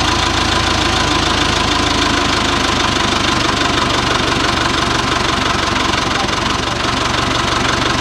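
A forklift engine runs with a steady loud hum.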